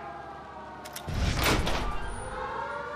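A heavy metal door bangs open.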